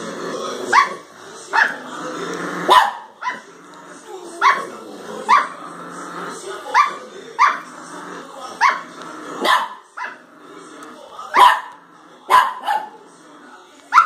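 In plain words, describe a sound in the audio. A small dog barks sharply and repeatedly close by.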